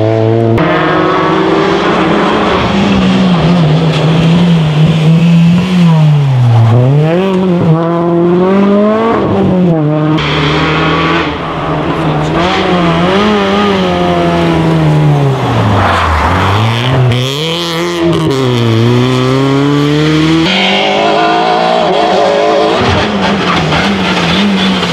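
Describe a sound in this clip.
Rally car engines rev hard and loud, rising and dropping in pitch as each car shifts gears.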